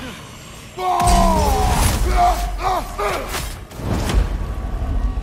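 A man grunts and shouts loudly with strain.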